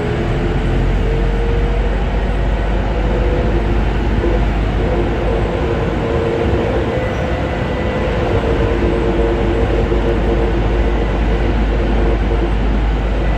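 The electric motors of a metro train whine.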